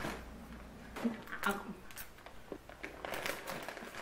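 A young woman crunches on chips.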